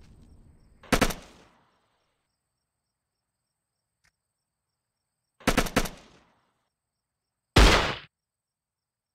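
A rocket launcher fires with a loud blast.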